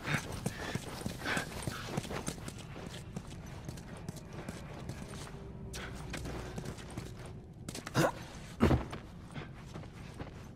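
Footsteps tread softly across a hard floor.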